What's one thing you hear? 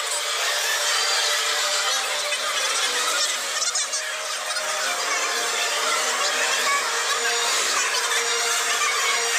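A crowd of adults chatters nearby in a busy indoor space.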